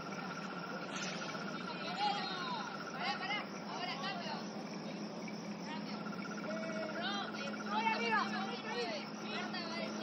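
Young women shout and call out to each other across an open playing field.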